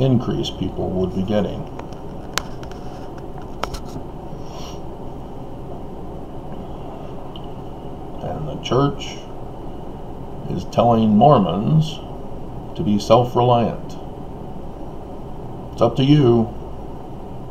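A middle-aged man speaks calmly into a nearby microphone, in short bursts with pauses.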